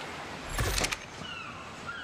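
Gentle waves wash against a shore.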